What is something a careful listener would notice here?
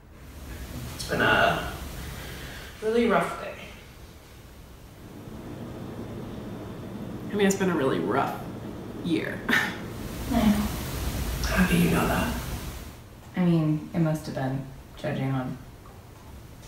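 A young woman speaks quietly and calmly close by.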